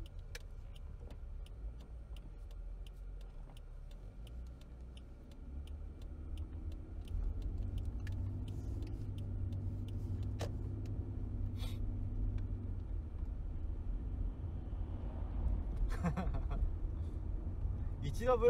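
A car engine hums low and steady as the car drives along a road.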